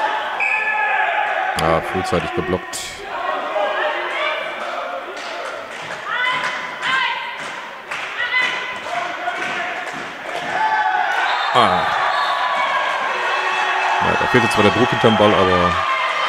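Young women shout and call out during play.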